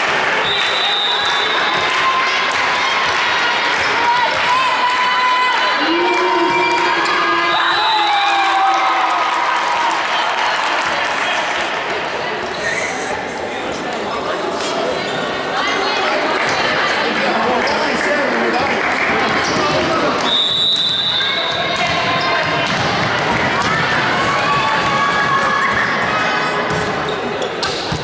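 Spectators in a hall murmur and call out.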